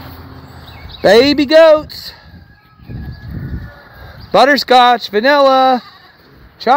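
Goats bleat loudly nearby, with long wavering cries.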